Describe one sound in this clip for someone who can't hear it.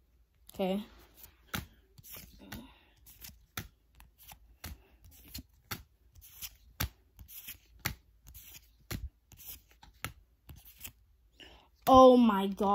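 Trading cards click and flick as they are shuffled by hand.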